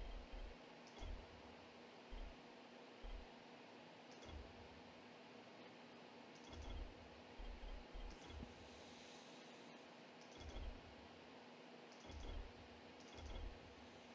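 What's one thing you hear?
Soft interface clicks tick as a menu selection moves.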